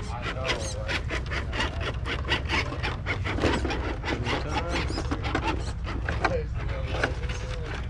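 Plastic wheels scrape and clatter on stone.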